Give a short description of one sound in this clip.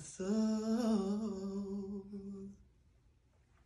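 Young boys sing a long, held note close by, which then stops.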